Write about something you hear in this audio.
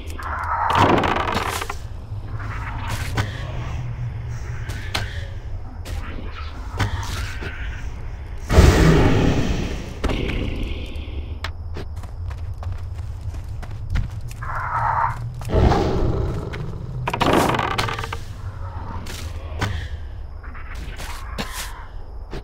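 Game weapon hits land with sharp thuds and clangs.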